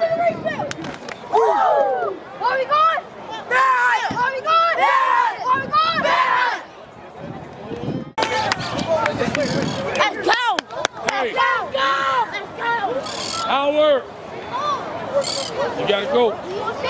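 Children shout and chant loudly together close by, outdoors.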